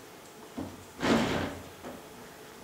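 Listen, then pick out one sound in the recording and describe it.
A chair scrapes loudly across a wooden floor.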